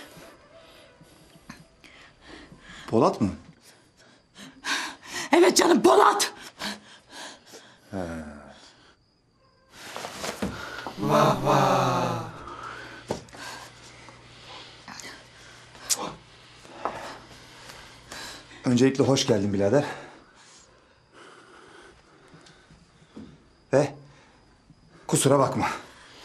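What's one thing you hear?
A man speaks tensely up close.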